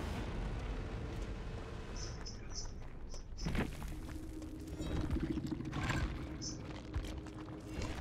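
Footsteps rustle through tall grass at a run.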